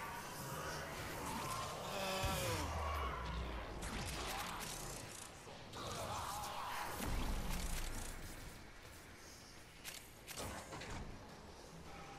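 Blades slash and energy blasts burst in quick succession.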